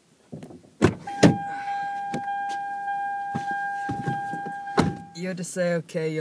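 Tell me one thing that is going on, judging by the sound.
A car's door-open chime dings steadily.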